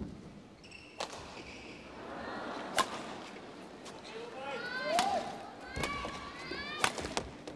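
A shuttlecock is struck sharply by rackets in a rally.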